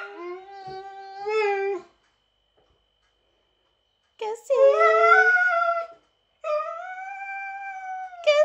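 A dog howls and whines loudly up close.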